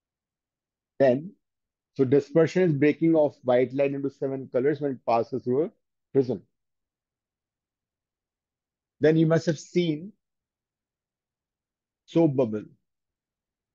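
A middle-aged man speaks calmly into a close microphone, explaining.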